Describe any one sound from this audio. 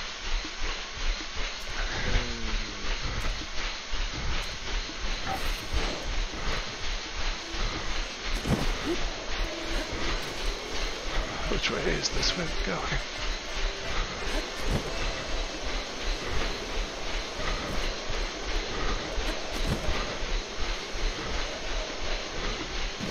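Feet pound steadily on a treadmill.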